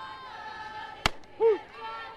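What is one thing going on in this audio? A softball smacks sharply into a catcher's mitt.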